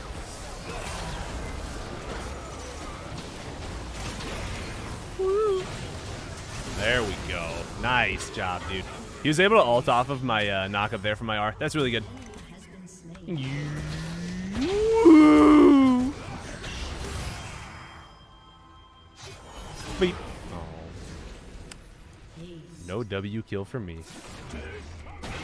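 Video game battle sound effects clash and ring out.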